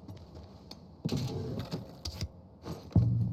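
A wooden drawer slides open with a knock.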